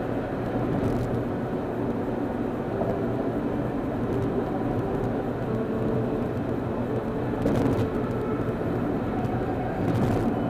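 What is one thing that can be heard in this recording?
A car engine hums steadily while driving at speed on a highway.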